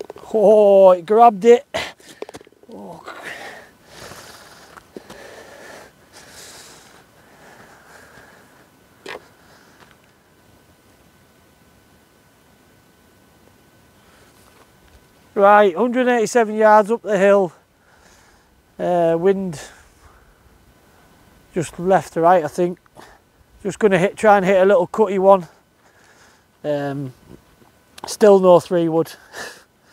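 A man talks calmly and close by.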